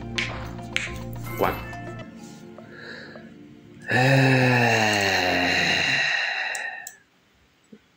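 A bright game jingle plays with chiming notes.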